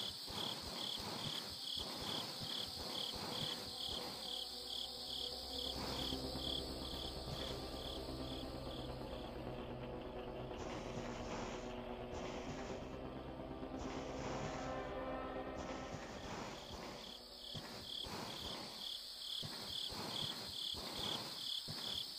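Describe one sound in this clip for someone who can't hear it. Footsteps tap quickly and evenly on a hard floor.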